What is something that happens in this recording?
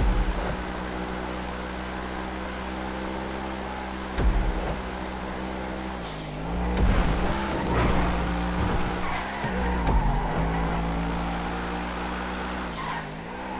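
A sports car engine drones steadily at high speed, its pitch dipping and rising as the driver shifts gears.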